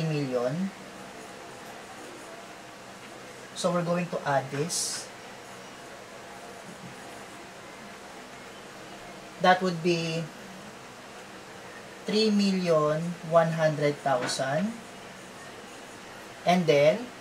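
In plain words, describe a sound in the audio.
A young man speaks clearly in short bursts, close by.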